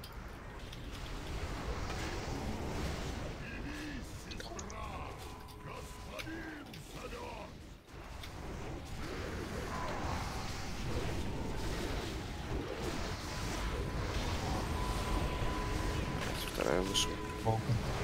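Spell effects crackle and boom in a fantasy battle.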